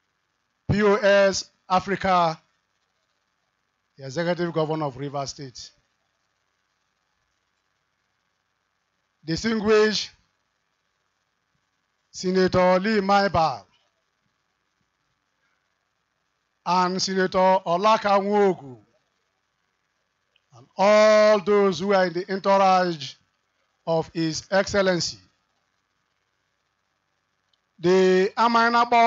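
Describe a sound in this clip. A man speaks forcefully into a microphone over loudspeakers, in short bursts with pauses, outdoors.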